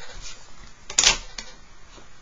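A plastic ruler clacks down onto a board.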